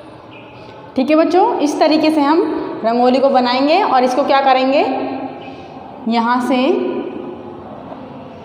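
A young woman speaks clearly and calmly nearby.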